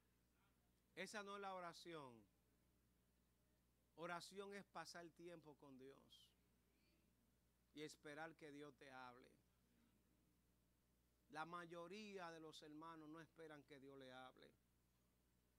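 A man preaches with animation through a microphone, with pauses between phrases.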